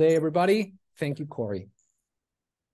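A young man speaks with animation over an online call.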